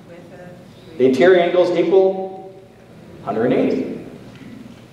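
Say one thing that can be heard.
A middle-aged man speaks calmly through a microphone in a large echoing hall.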